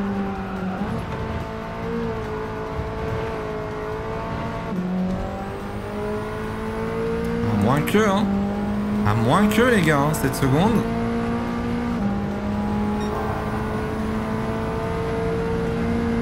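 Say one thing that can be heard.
A racing car engine roars steadily, shifting up through the gears.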